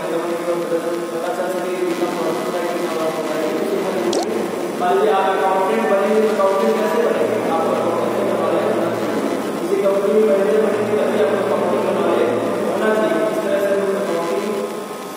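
A young man speaks steadily and clearly, close by in a room with a slight echo.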